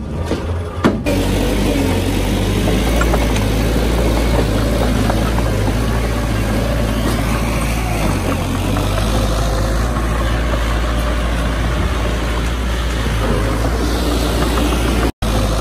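A digger engine hums steadily nearby.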